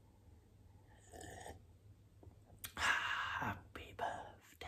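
A young man sips a drink and swallows.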